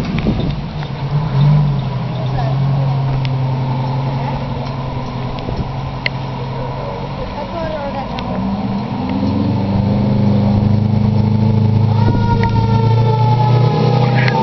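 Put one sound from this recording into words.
A fire engine's engine rumbles and idles nearby.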